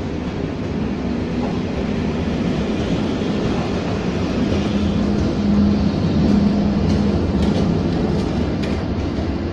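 An electric locomotive rolls slowly in along a platform.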